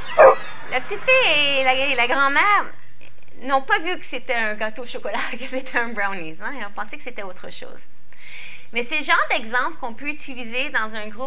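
A woman speaks with animation and laughs.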